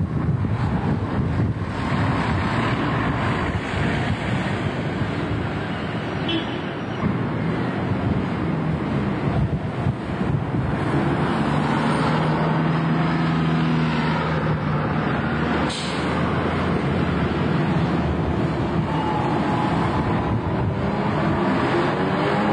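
A bus engine rumbles as a bus pulls past.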